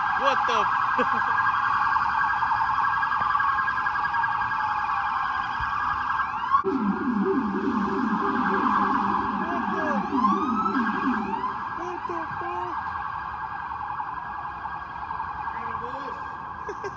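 Police sirens wail loudly nearby, steady and piercing.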